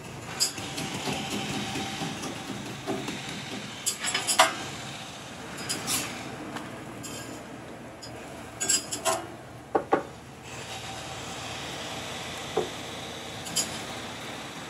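A metal spatula scrapes and clanks against a griddle.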